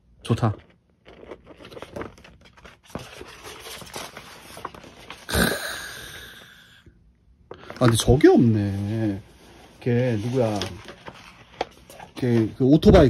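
Large sheets of paper rustle and crinkle as they are turned.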